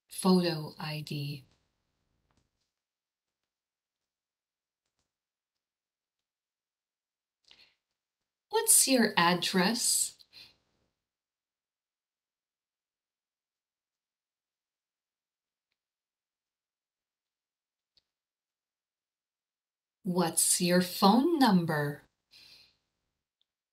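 A woman speaks calmly in short bursts through an online call microphone.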